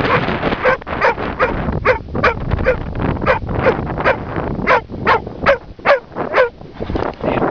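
A medium-sized hunting dog barks and yelps excitedly.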